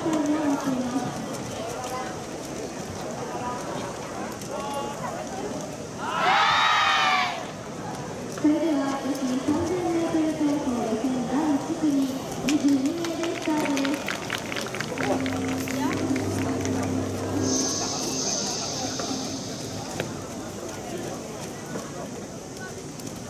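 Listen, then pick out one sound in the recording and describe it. A large crowd murmurs outdoors in a wide open stadium.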